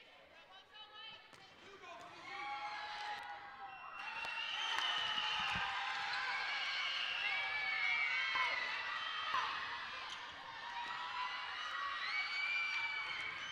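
A crowd cheers and shouts in a large echoing gym.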